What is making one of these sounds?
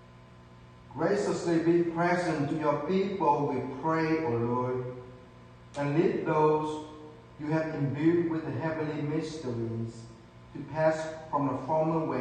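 A man reads aloud calmly through a microphone in an echoing room.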